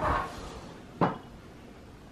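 A drawer shuts with a soft thud.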